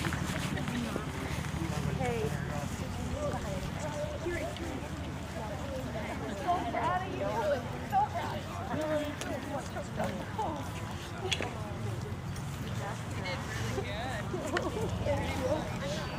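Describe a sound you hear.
Two men talk casually outdoors, a short way off.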